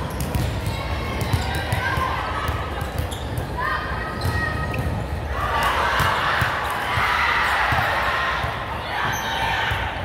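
Volleyballs thump against hands and the floor in a large echoing hall.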